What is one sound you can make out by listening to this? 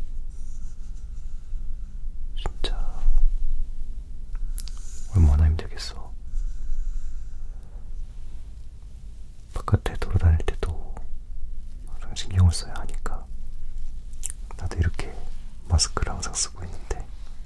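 Hands brush and tap close to a microphone.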